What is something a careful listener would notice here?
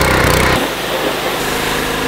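A pressure washer jet hisses against metal.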